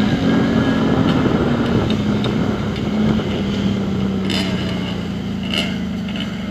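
Other motorbike and quad engines buzz nearby.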